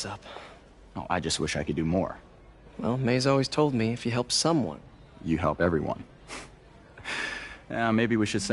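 A man speaks calmly and kindly.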